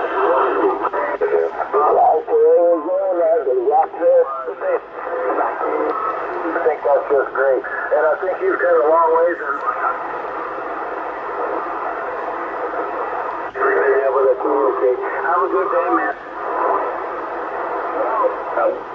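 Radio static hisses steadily from a loudspeaker.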